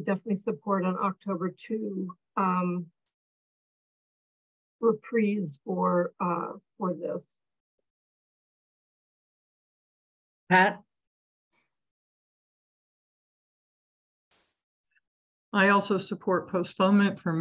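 An adult speaks calmly over an online call, in short bursts with pauses.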